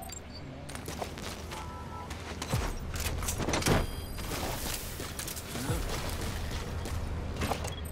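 Footsteps run quickly across a hard metal floor.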